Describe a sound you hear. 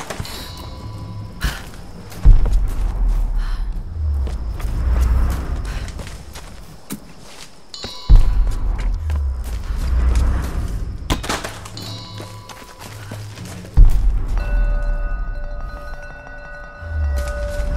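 Footsteps crunch on leaves and twigs.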